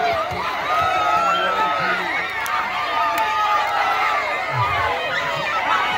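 A large crowd of young men and women shouts and cheers excitedly outdoors.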